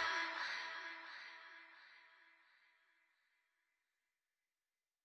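Music plays and slowly fades out.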